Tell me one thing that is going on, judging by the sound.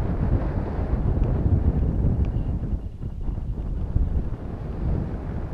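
Wind rumbles and buffets steadily up close.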